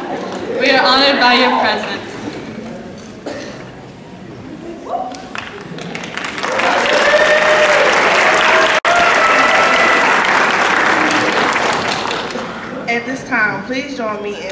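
A woman speaks into a microphone over loudspeakers in a large echoing hall.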